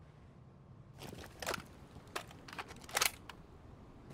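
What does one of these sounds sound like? A rifle is reloaded with sharp metallic clicks.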